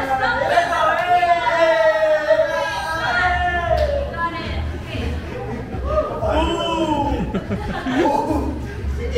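Young men laugh and cheer nearby.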